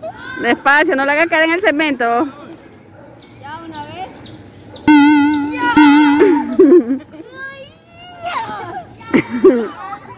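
Inflatable bubbles thump as two children bump into each other.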